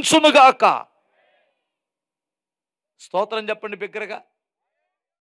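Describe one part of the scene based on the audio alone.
A man preaches with animation into a microphone, heard through loudspeakers.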